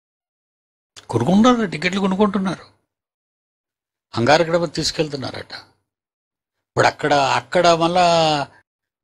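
An elderly man speaks slowly and with emphasis into a microphone, pausing between phrases.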